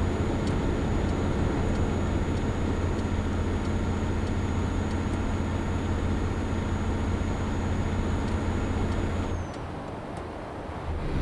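A truck engine drones steadily, then drops quieter near the end.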